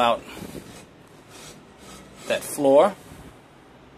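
A metal plate scrapes as it slides into a metal box.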